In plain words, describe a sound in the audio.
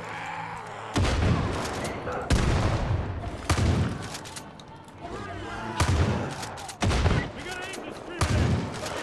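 Shotgun blasts boom loudly, one every second or so.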